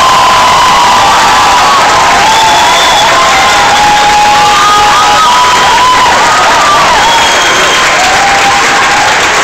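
A crowd cheers.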